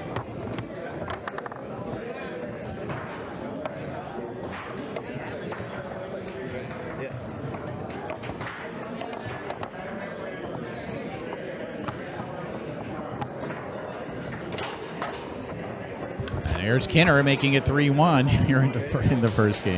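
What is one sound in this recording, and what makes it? Foosball rods clack and rattle as players spin and slide them.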